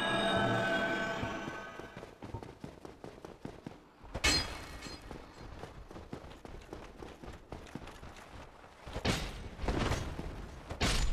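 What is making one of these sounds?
Armoured footsteps clank and scuff on stone.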